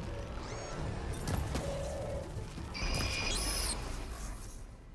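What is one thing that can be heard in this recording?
A magical blast hums and whooshes.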